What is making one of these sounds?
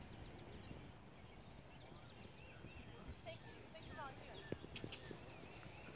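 A horse's hooves thud on grass as it trots.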